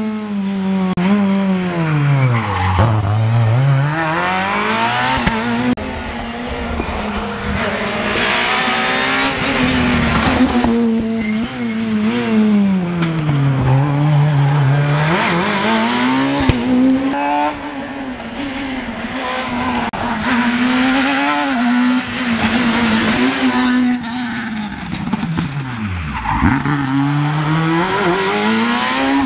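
Rally car engines roar loudly, revving up and down through the gears.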